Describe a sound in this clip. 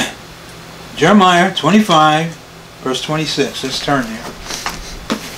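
An elderly man speaks slowly and hoarsely, close by.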